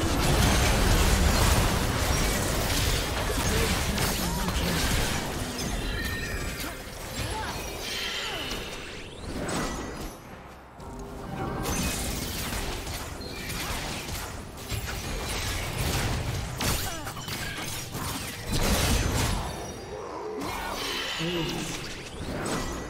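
Game spell effects crackle and burst in rapid clashes.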